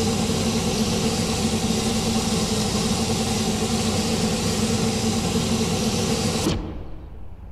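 A racing car engine hums loudly and steadily, then cuts off abruptly.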